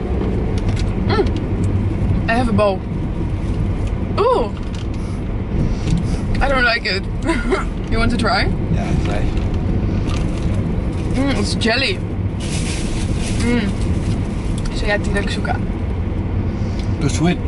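A man talks and laughs close by.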